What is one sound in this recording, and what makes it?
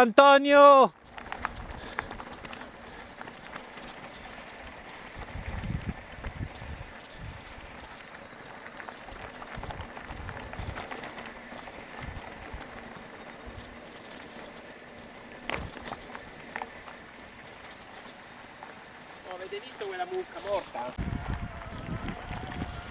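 Bicycle tyres rattle and crunch over a bumpy dirt track.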